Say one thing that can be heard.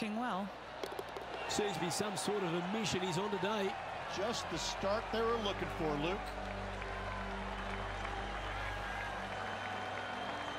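A crowd cheers and claps.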